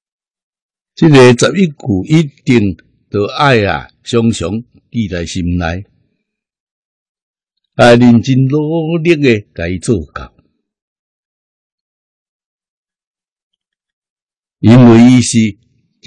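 An elderly man speaks calmly and slowly into a close microphone.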